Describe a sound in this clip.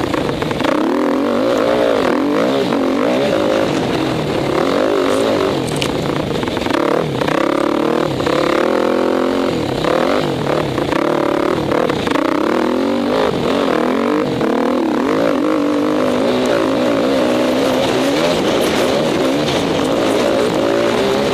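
A dirt bike engine revs hard, rising and falling as the rider shifts.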